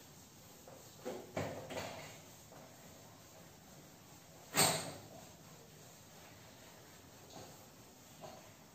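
A duster rubs and squeaks across a whiteboard.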